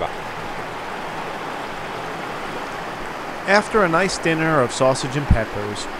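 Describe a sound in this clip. A stream rushes over rocks outdoors.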